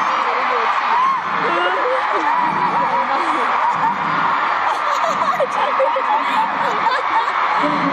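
A large crowd screams and cheers loudly in a big echoing arena.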